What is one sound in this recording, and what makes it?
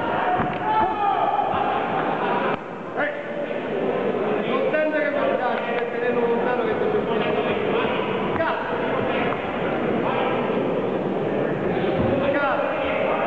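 A crowd cheers and shouts, echoing.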